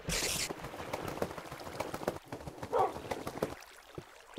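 Wolves whine and pant close by.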